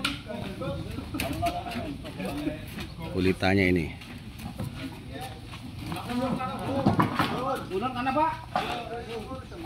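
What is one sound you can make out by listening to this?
Several men talk and call out to each other outdoors.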